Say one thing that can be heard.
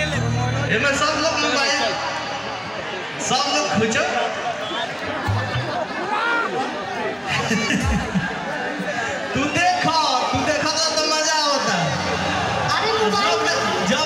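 A crowd cheers and sings along close by.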